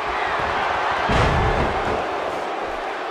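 A body slams heavily onto a wrestling mat with a deep thud.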